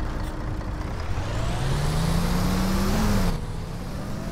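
A bus engine whines higher and higher as the bus speeds up.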